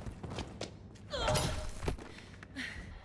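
Heavy blows land with wet, crunching thuds.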